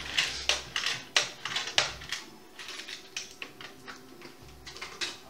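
Slot machines chime and jingle nearby.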